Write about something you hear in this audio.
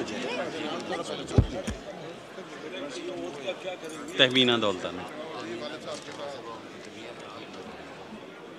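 Many men talk and murmur at once in a large echoing hall.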